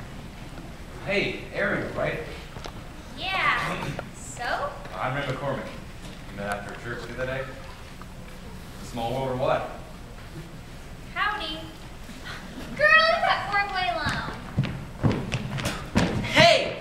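Teenage actors speak lines with animation on a stage, heard from the audience in a large hall.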